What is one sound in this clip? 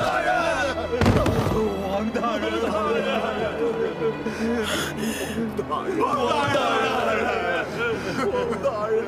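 Several men call out urgently, their voices overlapping.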